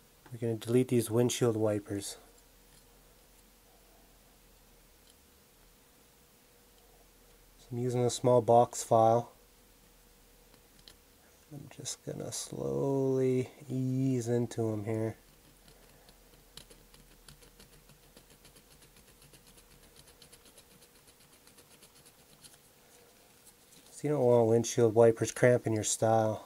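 A blade scrapes softly against a small metal part.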